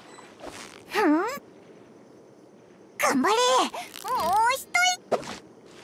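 Water splashes as a fish struggles on a fishing line.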